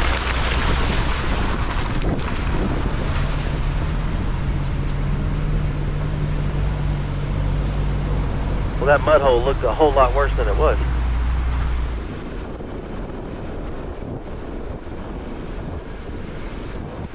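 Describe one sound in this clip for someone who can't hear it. A vehicle engine rumbles steadily at low speed.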